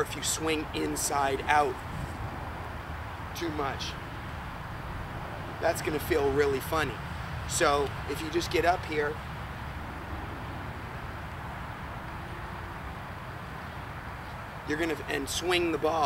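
A young man talks with animation close by, outdoors.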